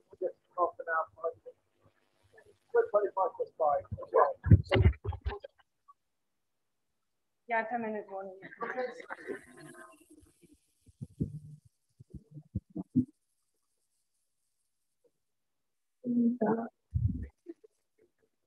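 A woman speaks to a room through a microphone, heard over an online call.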